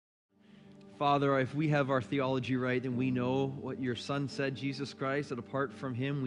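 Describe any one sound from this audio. A man speaks through a microphone to an audience.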